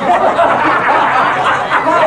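A man laughs heartily close by.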